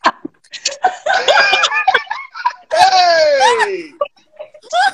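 A woman screams with laughter over an online call.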